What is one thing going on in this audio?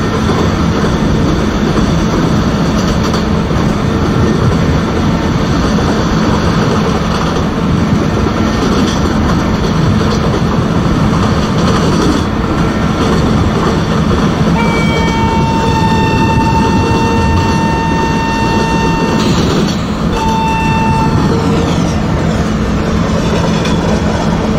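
An electric locomotive hums steadily as it runs.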